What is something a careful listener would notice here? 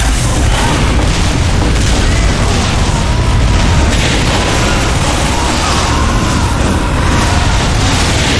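A flamethrower roars steadily in a video game.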